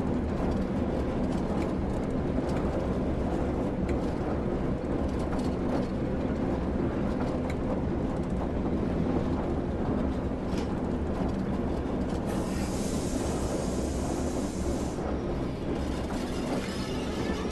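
Train wheels click and rattle over the rails.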